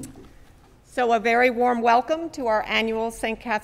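An elderly woman speaks clearly through a microphone in an echoing hall.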